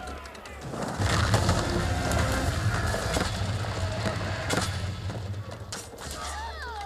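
Stone walls crumble and crash with a deep rumble.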